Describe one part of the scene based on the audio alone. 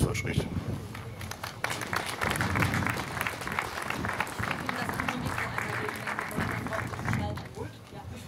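An audience applauds outdoors.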